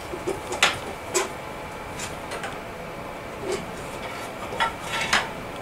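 Metal parts clink and clank sharply now and then.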